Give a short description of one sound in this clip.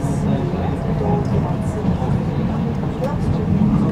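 Another tram rushes past close by.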